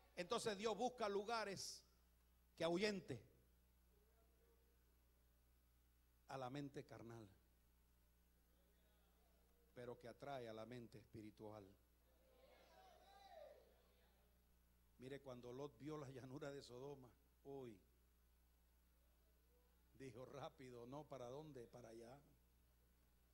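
An elderly man preaches with animation into a microphone, in bursts with pauses.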